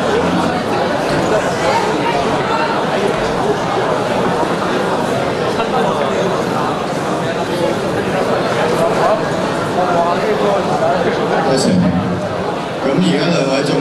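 An audience murmurs in a large hall.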